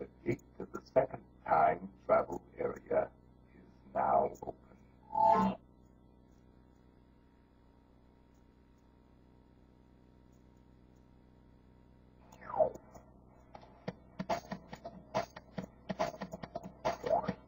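Video game sound effects play through a television speaker.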